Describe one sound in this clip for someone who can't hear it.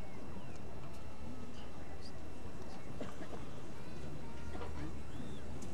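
A crowd murmurs quietly outdoors.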